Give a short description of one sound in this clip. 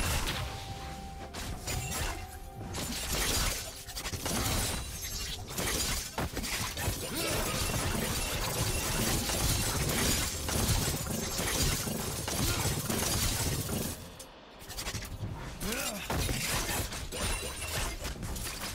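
Video game spell effects whoosh and crackle during a battle.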